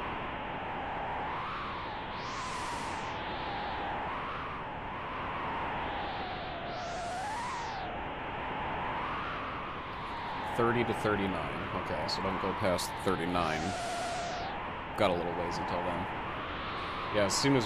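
Gentle video game music plays throughout.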